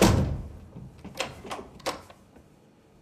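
A door lock clicks and rattles.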